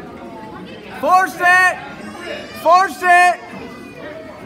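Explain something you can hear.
Spectators shout loudly in short bursts.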